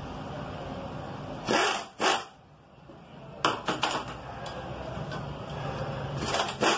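Metal tools clink and click against an engine.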